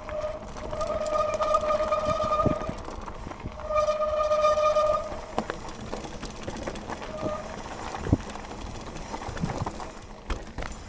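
A bicycle's frame and chain rattle over bumps.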